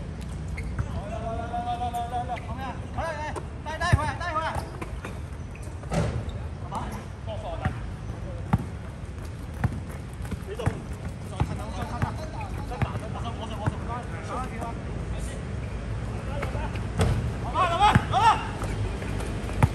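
Young men shout to each other during play.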